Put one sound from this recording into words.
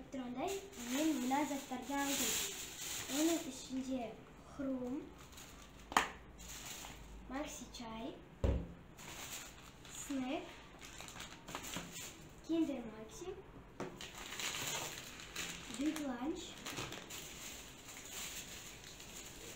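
A plastic bag rustles as a young girl's hands dig through it.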